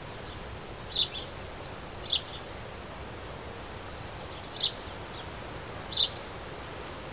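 A small bird chirps in short bursts close by.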